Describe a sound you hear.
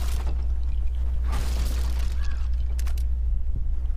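A barrel breaks apart with a crash.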